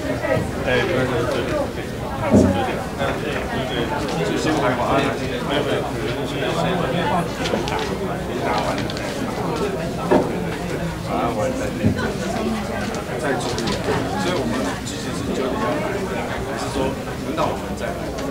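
Many men and women chatter at once in a large room.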